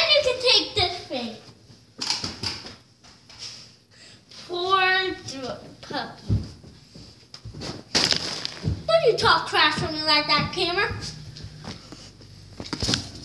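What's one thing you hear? Footsteps thump on a floor close by.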